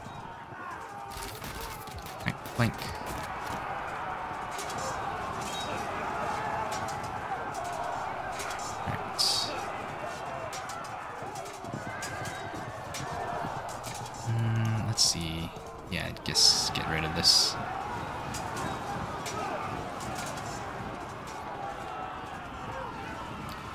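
A large battle rumbles with a constant din of clashing troops.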